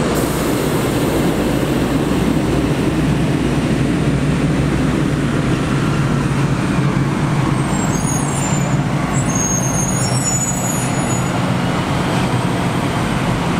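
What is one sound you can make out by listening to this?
Large tractor engines roar nearby.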